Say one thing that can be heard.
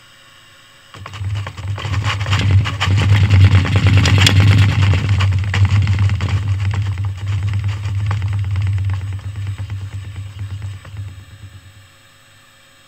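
A shake table rumbles loudly with a low, steady hum.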